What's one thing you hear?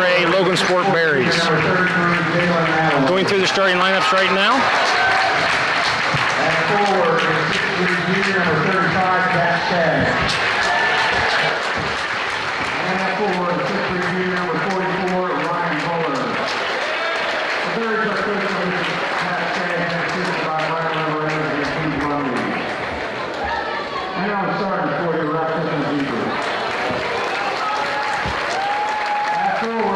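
A crowd cheers and chatters throughout.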